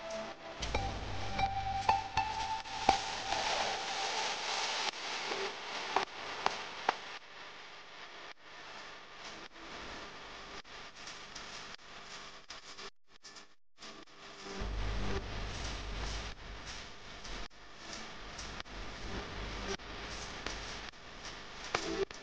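Plastic and metal parts click and rattle as hands work on a scooter.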